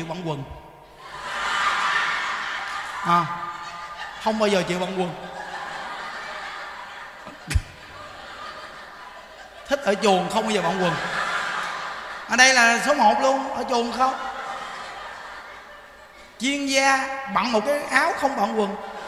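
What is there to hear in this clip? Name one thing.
A crowd of elderly people laughs.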